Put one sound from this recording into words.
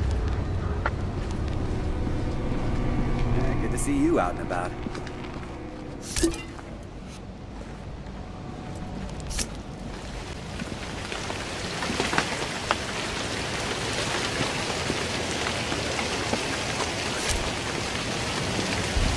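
Footsteps crunch slowly over gritty ground.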